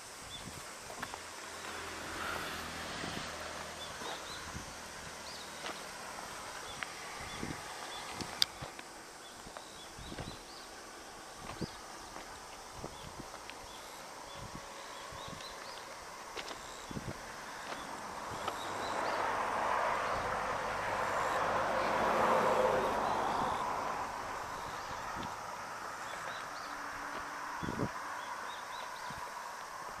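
Footsteps crunch steadily on gravel and wooden sleepers.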